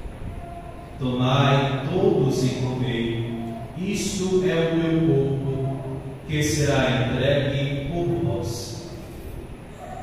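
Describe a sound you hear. A man chants in a sung voice through a microphone, in an echoing room.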